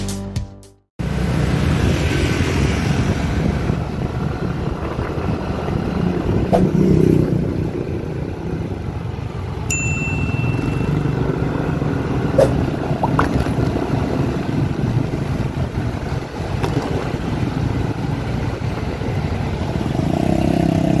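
Traffic noise rushes past outdoors.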